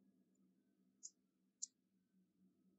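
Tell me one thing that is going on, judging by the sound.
Coins clink softly as a hand moves them.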